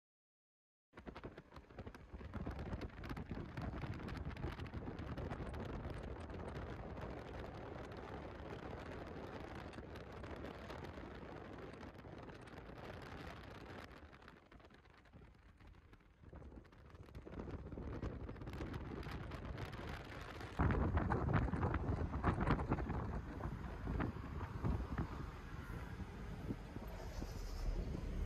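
A car's engine and tyres rumble steadily on a road.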